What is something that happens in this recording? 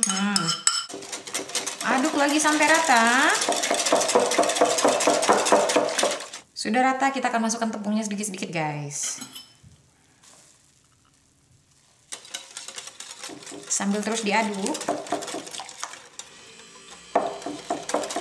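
A whisk clinks and scrapes against a bowl.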